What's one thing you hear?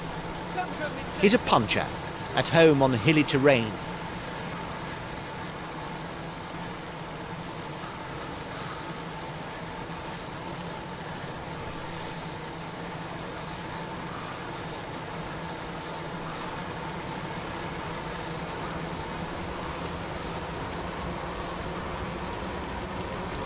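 Bicycle wheels whir along a paved road.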